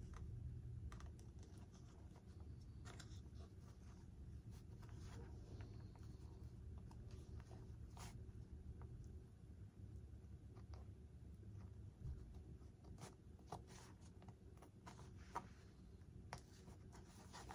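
Small tools click and tap against a light plastic part close by.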